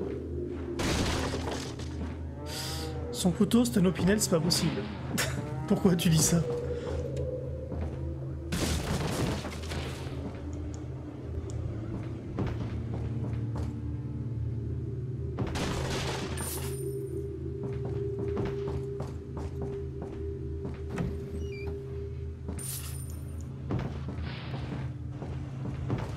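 A low, steady music drone plays throughout.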